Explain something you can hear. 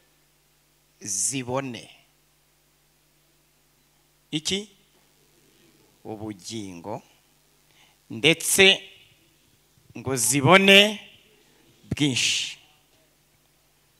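A man speaks slowly and deliberately into a microphone, heard through loudspeakers, with pauses between phrases.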